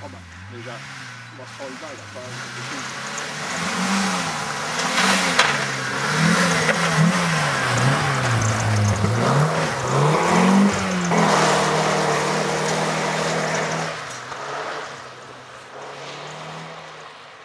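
A rally car engine revs hard, its pitch rising and falling.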